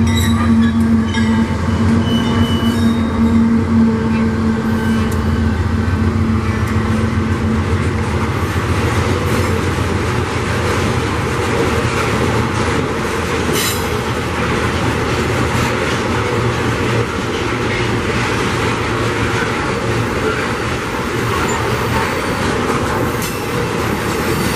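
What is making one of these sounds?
Freight wagons clatter and rumble over the rails close by.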